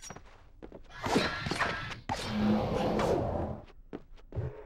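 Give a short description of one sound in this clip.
A magical whooshing rush swells and fades.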